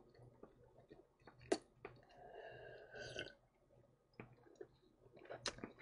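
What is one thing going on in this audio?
A man gulps a drink close to a microphone.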